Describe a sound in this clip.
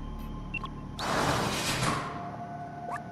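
A heavy metal gate rattles and slams shut.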